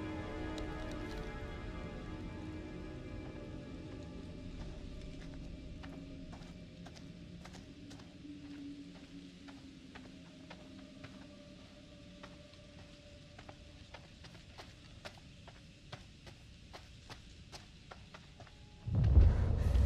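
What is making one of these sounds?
Footsteps tap slowly on a wet road.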